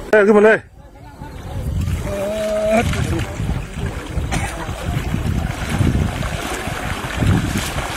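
Water splashes as people wade through a river.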